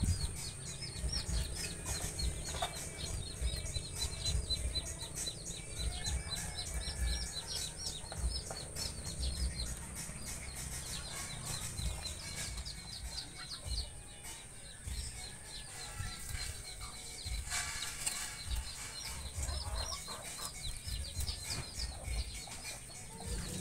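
Rabbits shuffle and rustle about on a wire cage floor.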